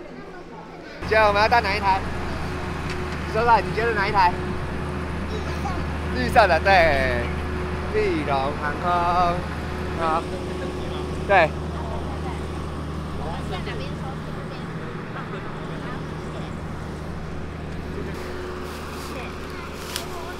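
A steady low engine hum drones outdoors.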